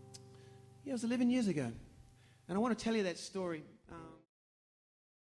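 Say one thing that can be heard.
An acoustic guitar strums through loudspeakers.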